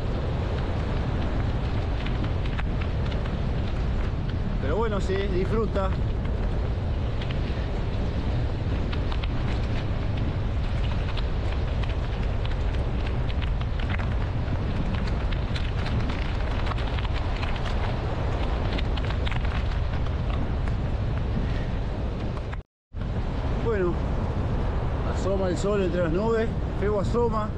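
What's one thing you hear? Strong wind buffets and rumbles outdoors.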